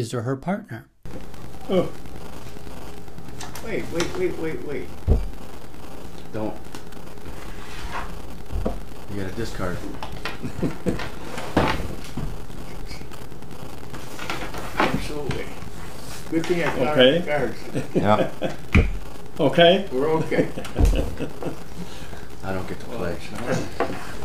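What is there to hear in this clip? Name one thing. Elderly men chat casually.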